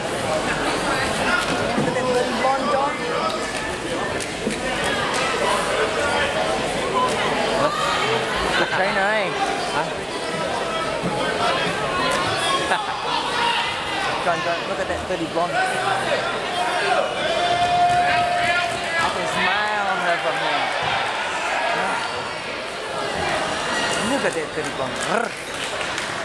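A crowd cheers and shouts loudly all around.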